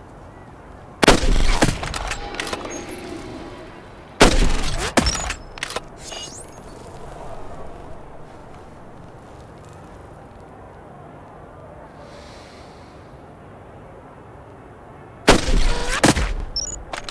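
A sniper rifle fires with a loud crack and a ringing echo.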